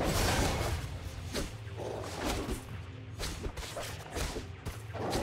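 Game combat effects clash and crackle in quick bursts.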